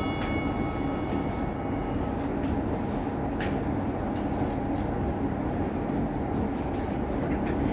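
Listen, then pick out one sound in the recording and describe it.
A man murmurs prayers quietly in a low voice.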